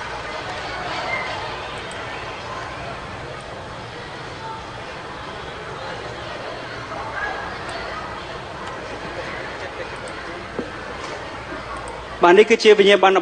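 A large crowd cheers and claps in a big hall.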